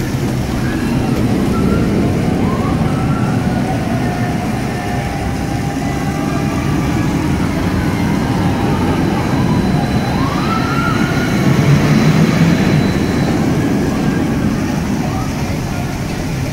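Riders on a roller coaster scream in the distance.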